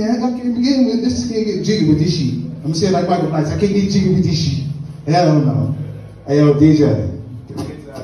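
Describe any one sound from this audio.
A man speaks with animation into a microphone through a loudspeaker in an echoing room.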